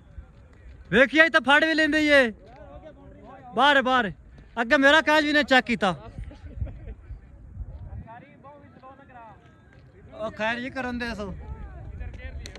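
Young men shout loudly and excitedly across an open field.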